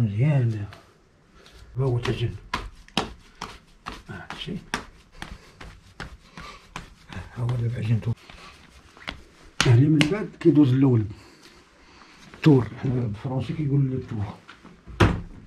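Wet clay thuds and slaps under a man's hands.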